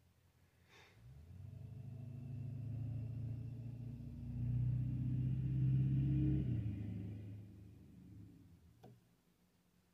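A phone plays a low, swelling startup sound.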